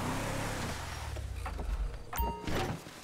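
A truck engine rumbles and winds down.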